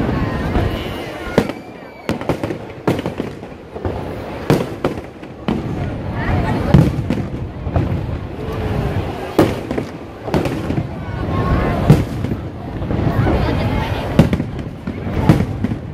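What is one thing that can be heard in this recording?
A crowd chatters and cheers nearby.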